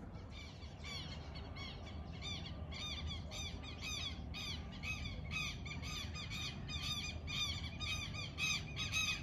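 A flock of birds calls overhead with rapid, repeated shrill chirps.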